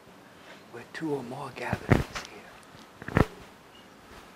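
Another man speaks briefly and more quietly, without a microphone.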